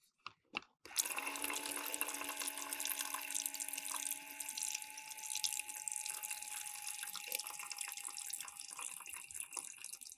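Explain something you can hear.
Water runs from a small tap into a plastic basin.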